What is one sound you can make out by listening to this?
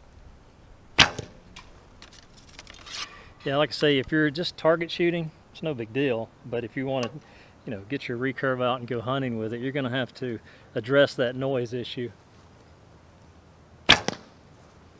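A bowstring snaps as an arrow is released.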